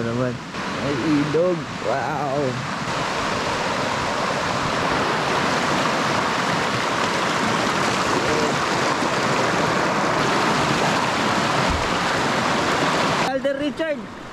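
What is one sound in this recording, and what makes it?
A river rushes loudly over rocks.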